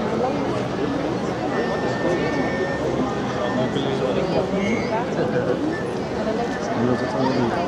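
A large outdoor crowd chatters and murmurs throughout.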